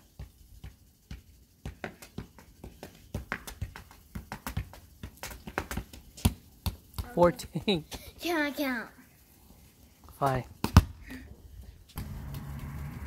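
A ball thumps repeatedly on hard pavement.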